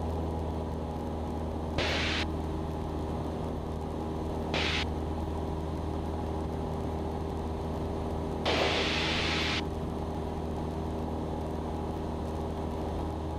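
A small plane's engine drones steadily and loudly.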